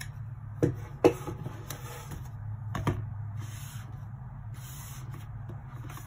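A game controller knocks against a cardboard box.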